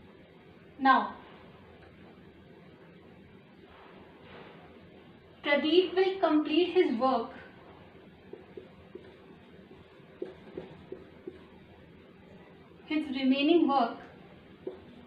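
A young woman speaks calmly, as if teaching, close by.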